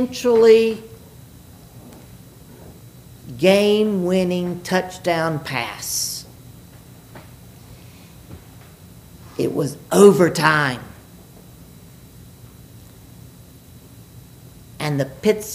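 An elderly man speaks slowly and calmly in an echoing room, pausing between phrases.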